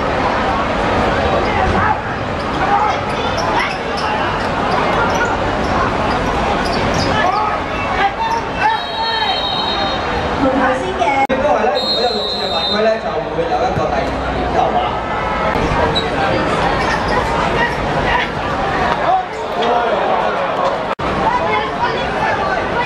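A crowd of spectators chatters and cheers nearby.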